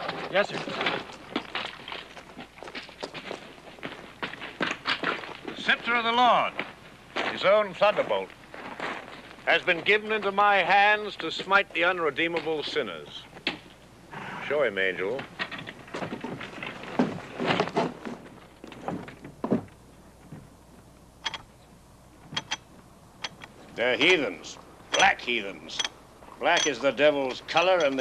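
Men talk calmly nearby, taking turns.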